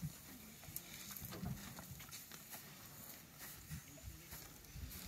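Elephants tear and munch grass close by.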